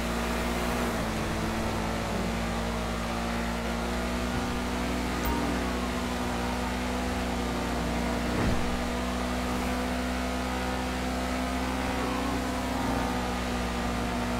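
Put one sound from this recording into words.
A car engine hums steadily as the car speeds along a road.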